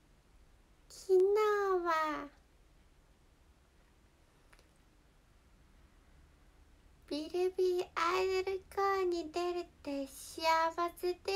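A young woman speaks close by in a high, playful voice.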